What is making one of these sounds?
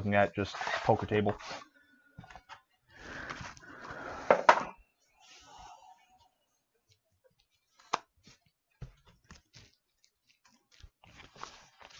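Plastic wrapping crinkles as a card pack is handled.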